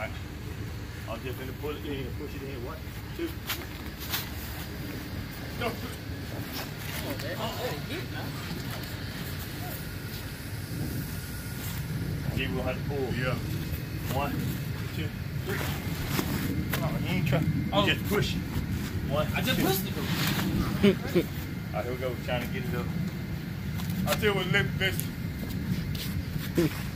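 A heavy object scrapes and bumps as it is pushed through a doorway.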